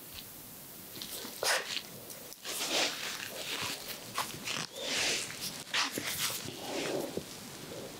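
A young woman whispers softly, very close.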